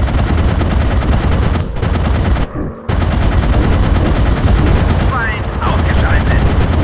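Machine guns fire in rapid rattling bursts.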